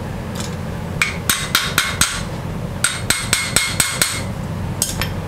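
Metal clanks sharply as a hammer strikes a steel part.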